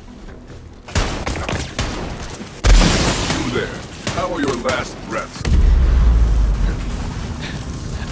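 Gunshots and explosions ring out loudly.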